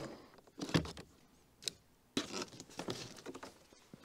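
Plastic clips snap as a car door panel is pried loose.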